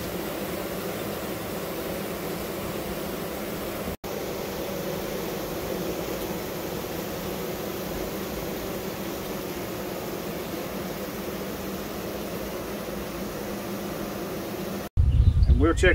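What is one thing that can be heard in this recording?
Bees buzz steadily up close.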